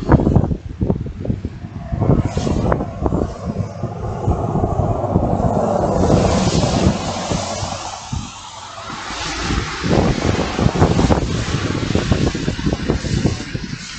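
Wind rushes past the microphone outdoors.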